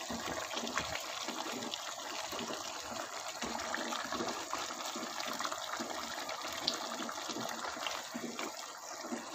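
A stew bubbles and sizzles steadily in a pot.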